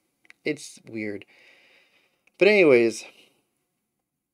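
A man speaks calmly and expressively, close to a microphone.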